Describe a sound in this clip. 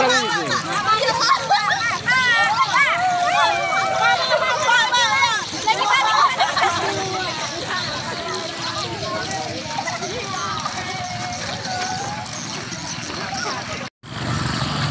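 Young girls chatter and call out excitedly nearby.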